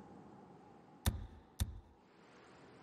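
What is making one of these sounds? Two sharp menu clicks sound in quick succession.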